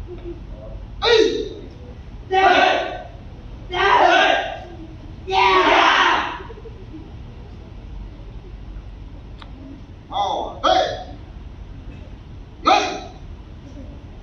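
Young men shout loudly in unison, echoing in a large hall.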